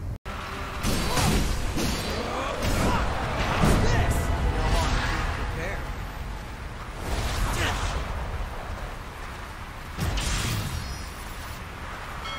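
Swords clash and slash with heavy impacts during a fight.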